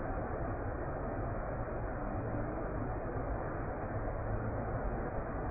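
Water pours steadily over a ledge and splashes into a pool.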